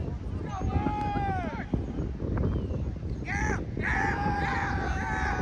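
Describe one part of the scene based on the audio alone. Young players shout from far across an open field.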